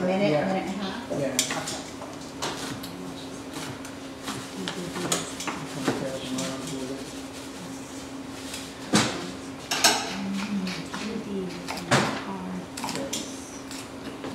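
A kitchen hood hums steadily.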